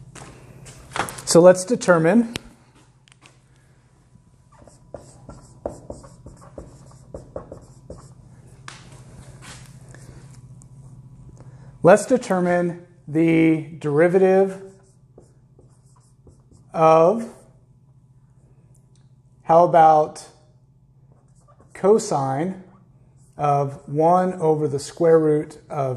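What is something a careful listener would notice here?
A man speaks calmly and clearly close by, in short phrases.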